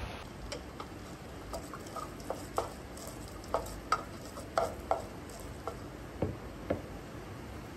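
A glass lid clinks against a glass cup.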